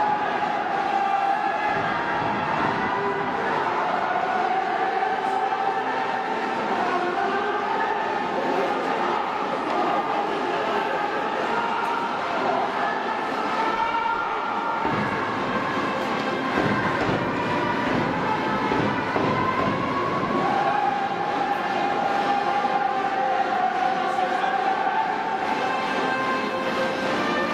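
A large stadium crowd chants and sings together loudly.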